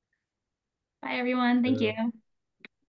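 A young woman speaks warmly over an online call.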